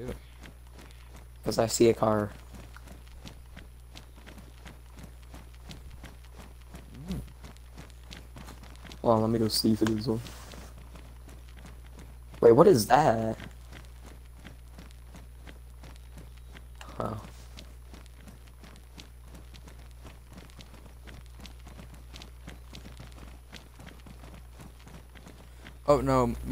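Footsteps crunch steadily on a paved road.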